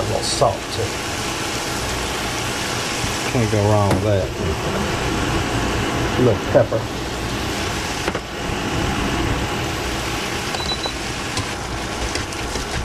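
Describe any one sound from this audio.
A fork scrapes and stirs meat in a pan.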